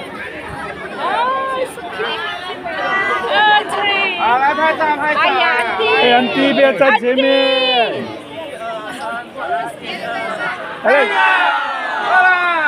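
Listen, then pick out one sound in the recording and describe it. Men and women shout loudly and excitedly close by.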